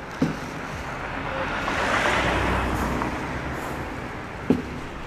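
A car drives past, swelling and fading.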